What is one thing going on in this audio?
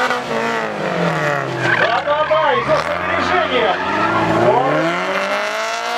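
Car tyres squeal on asphalt.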